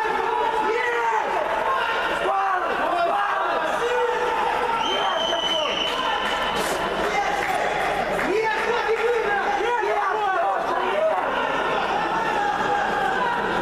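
A crowd of people talk and call out in a large echoing hall.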